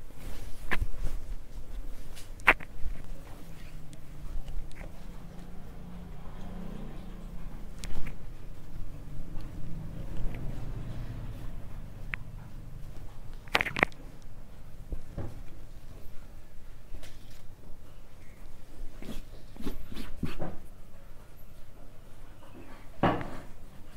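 Cloth rustles as hands smooth and fold a shirt.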